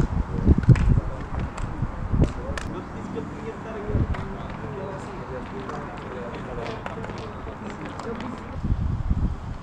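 Several men talk and call out to one another outdoors.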